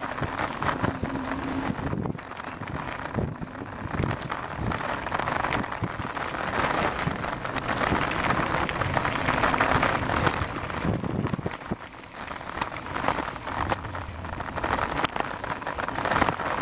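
Bicycle tyres rattle and crunch over a bumpy dirt path.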